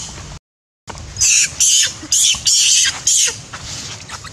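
A young monkey squeals shrilly up close.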